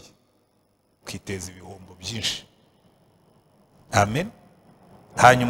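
A middle-aged man speaks slowly and earnestly through a microphone, in a room with a slight echo.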